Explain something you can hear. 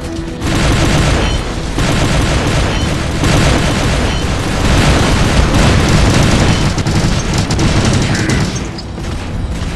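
Heavy gunfire booms and rattles in rapid bursts.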